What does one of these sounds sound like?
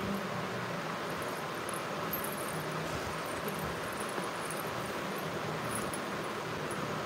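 Small silver anklet bells jingle as they are handled.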